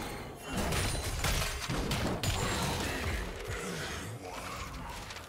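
Spell blasts and clashing weapons crackle in a fast video game fight.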